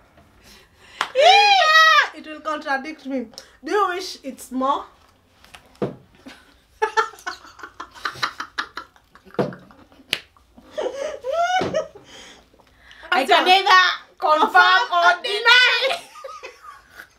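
A woman laughs loudly and shrilly.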